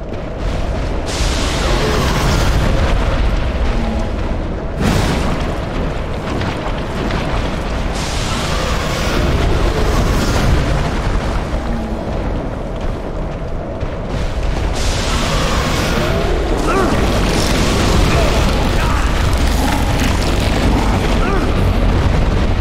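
Heavy metal blades swing and strike in a fight.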